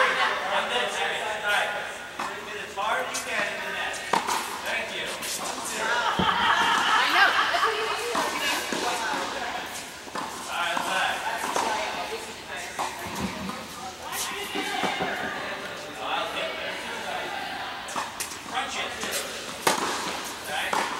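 Young women call out to each other across a court.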